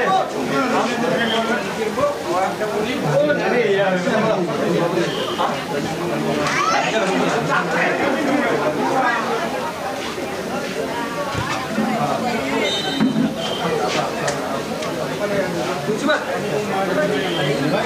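A large outdoor crowd chatters and shouts throughout.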